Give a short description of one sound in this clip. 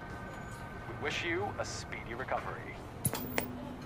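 A man speaks calmly through a television loudspeaker.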